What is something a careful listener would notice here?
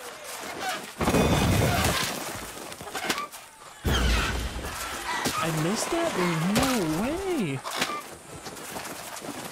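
Wings flap and beat in quick bursts.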